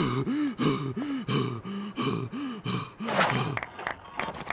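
A man speaks in a drawling, lazy voice.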